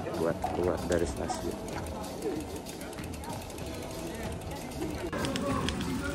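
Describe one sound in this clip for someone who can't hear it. A crowd of cyclists chatters outdoors.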